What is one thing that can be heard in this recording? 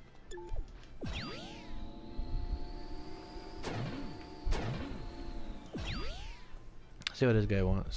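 A hover vehicle hums and whooshes as it rises and moves.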